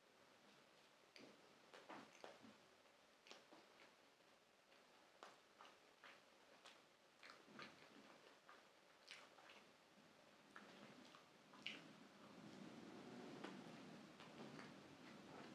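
A young man chews food with soft crunchy clicks close to a microphone.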